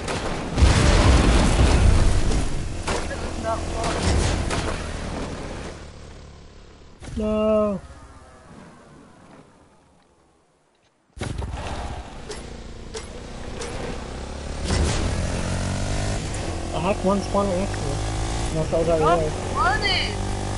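A small quad bike engine hums and revs as it drives.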